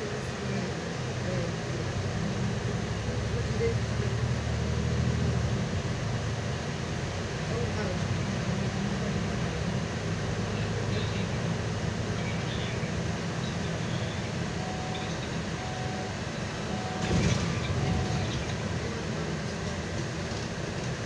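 A bus engine hums steadily from inside the bus as it drives.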